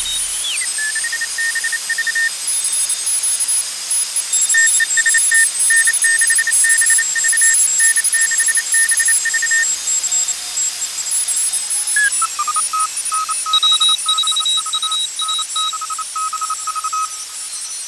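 Morse code beeps come through a radio receiver in quick on-off tones.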